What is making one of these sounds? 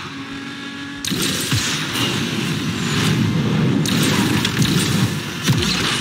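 A nitro boost whooshes as the car speeds up.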